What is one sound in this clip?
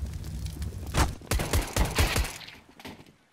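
A pistol fires several sharp shots in quick succession.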